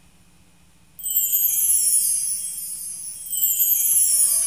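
A small bell rings repeatedly.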